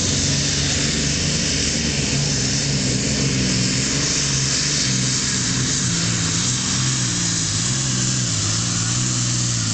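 A pulling sled scrapes and grinds over the dirt.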